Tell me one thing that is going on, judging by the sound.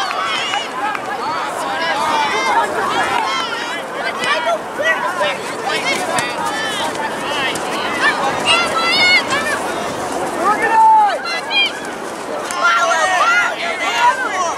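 Distant players shout to one another across an open field.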